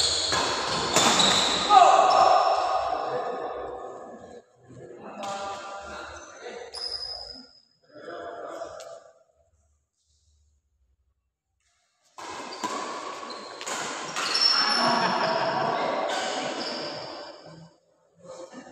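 Badminton rackets smack a shuttlecock back and forth in an indoor hall.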